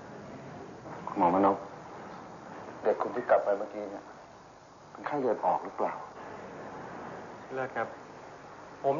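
A middle-aged man speaks firmly nearby.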